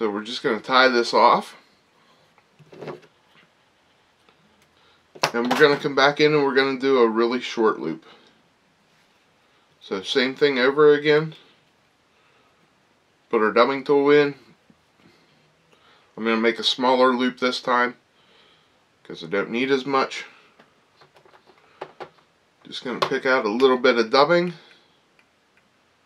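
A man talks calmly and close by, in short phrases with pauses.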